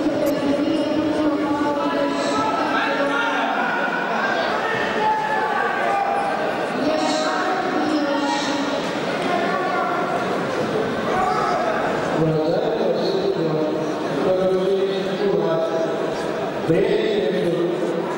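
A crowd chatters and calls out throughout a large echoing hall.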